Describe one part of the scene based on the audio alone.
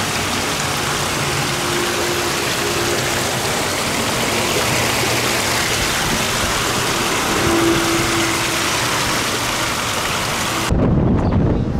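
Water rushes and splashes over rocks close by.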